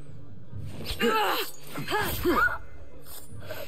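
A woman cries out in pain.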